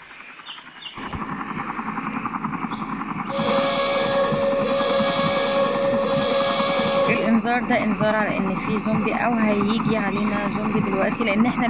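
A helicopter engine hums steadily.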